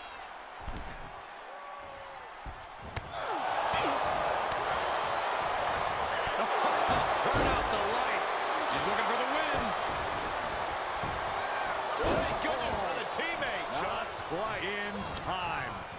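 Blows and bodies thud on a wrestling ring.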